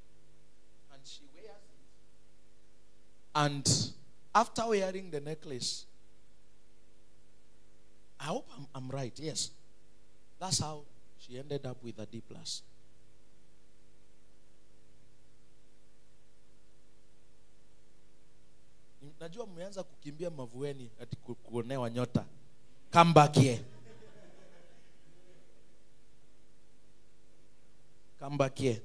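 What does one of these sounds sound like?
A man preaches with animation through a microphone, in bursts with long pauses.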